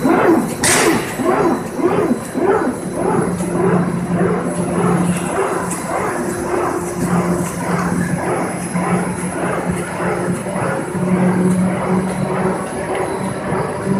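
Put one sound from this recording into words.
Industrial machinery hums and rattles steadily in a large echoing hall.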